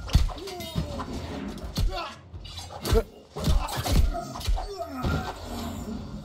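Magic spells burst with loud whooshing blasts.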